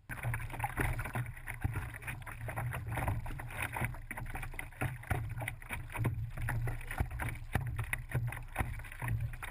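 Water splashes and laps against a board gliding across the water.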